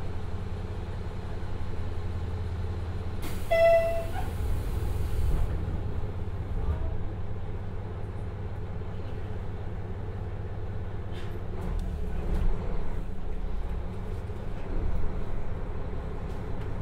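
A diesel engine idles with a low, steady rumble.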